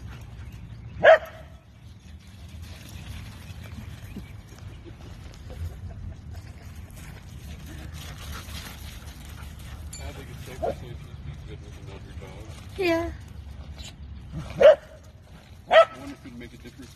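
Dogs bark and yelp sharply while playing.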